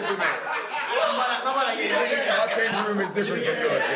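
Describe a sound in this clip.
A young man speaks cheerfully close to the microphone.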